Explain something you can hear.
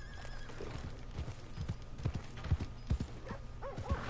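A horse's hooves clop on a dirt road.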